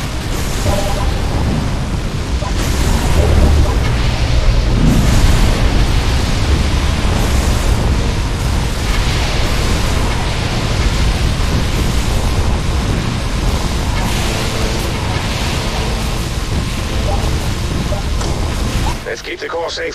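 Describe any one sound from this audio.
Game towers fire weapons in dense buzzing and booming bursts.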